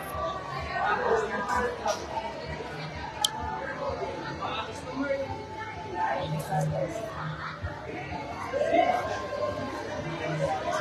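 Many people chatter in a busy dining hall.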